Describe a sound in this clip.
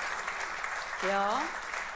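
A woman sings a short rising note through a microphone in a large hall.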